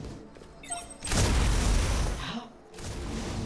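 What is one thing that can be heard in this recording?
A magical energy blast whooshes loudly.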